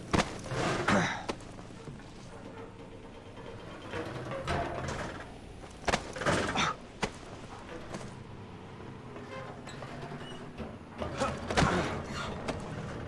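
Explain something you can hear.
Hands and boots clank on a metal ladder during a climb.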